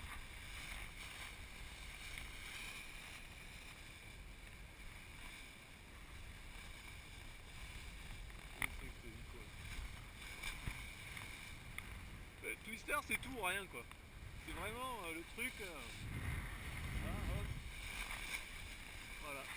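Wind rushes steadily past a paraglider in flight.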